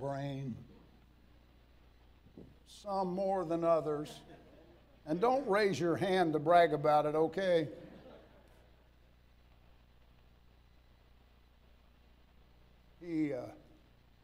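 An elderly man speaks slowly and earnestly through a microphone, with long pauses.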